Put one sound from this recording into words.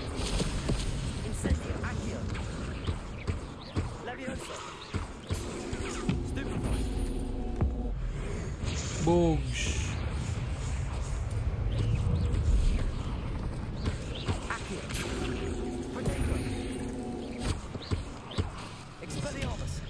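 Magic spells zap and crackle with sharp bursts.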